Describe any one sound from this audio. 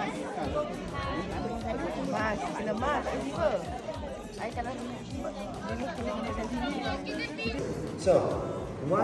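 A crowd of people chatter outdoors.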